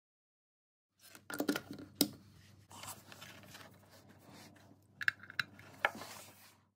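Hands handle a small plastic box and a cable with soft knocks and rustles.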